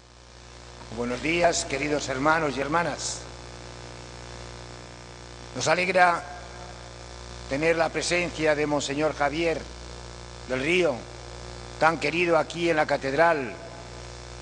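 An elderly man preaches slowly and solemnly through a microphone in a large echoing hall.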